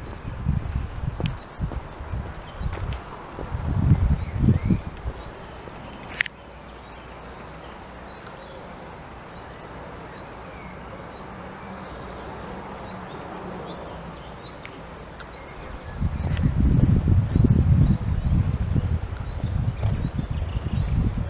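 Wind gusts roar across the microphone outdoors.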